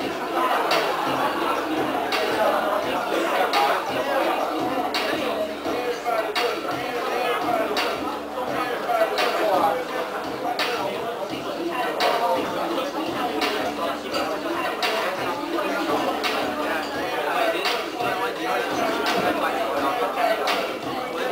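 A group of young people chatter and laugh.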